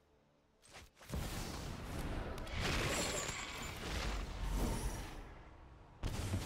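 A magical blast whooshes and rumbles.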